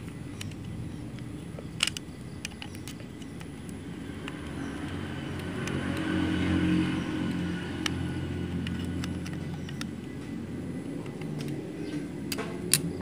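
Metal parts of a sewing machine click and rattle as they are handled.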